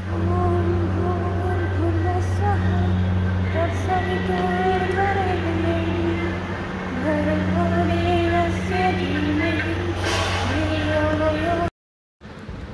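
Music with a melody plays through a loudspeaker in an echoing hall.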